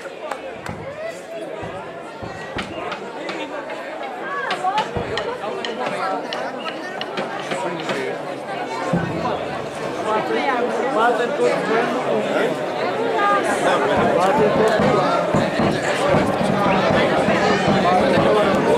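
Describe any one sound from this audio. A crowd of men and women chatters all around, close by, growing louder.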